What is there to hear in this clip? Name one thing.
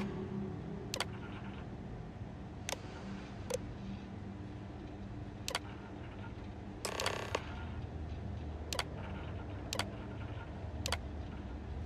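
Menu buttons click sharply now and then.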